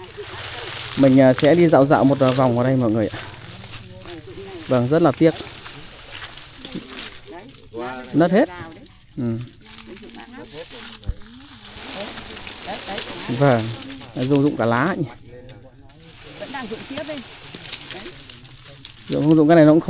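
A middle-aged woman talks with animation close by, outdoors.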